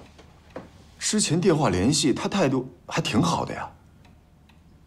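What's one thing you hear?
A middle-aged man speaks calmly and warmly, close by.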